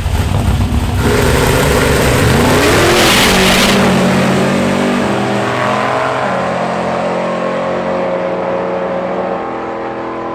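A pickup truck launches with a loud roar and races away, shifting gears as it fades into the distance.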